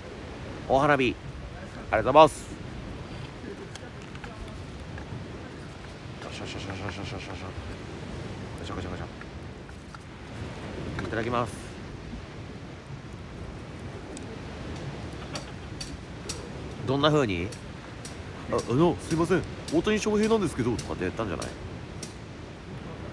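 A small wood fire crackles.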